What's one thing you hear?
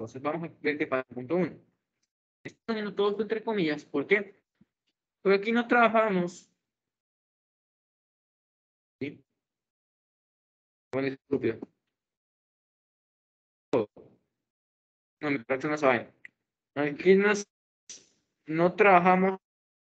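A young man speaks calmly through an online call, pausing often.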